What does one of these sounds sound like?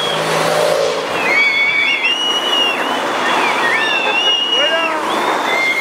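A crowd cheers and shouts along a road outdoors.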